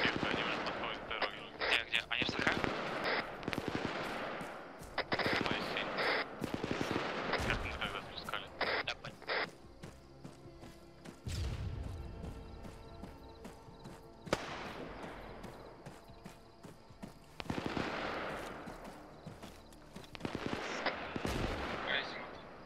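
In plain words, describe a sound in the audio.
Rifle shots crack and echo far across open hills.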